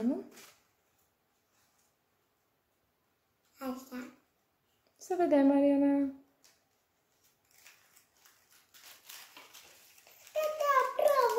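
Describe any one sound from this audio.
Paper rustles and crinkles in small hands.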